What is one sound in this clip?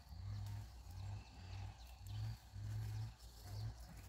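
Footsteps tread through a field.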